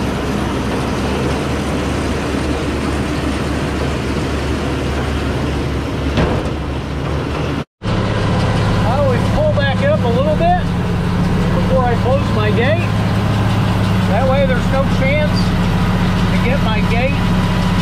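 A tractor engine runs with a steady, loud rumble.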